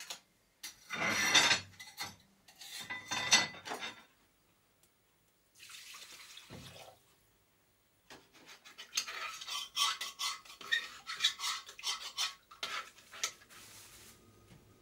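Metal pots and lids clatter and clink on a stove.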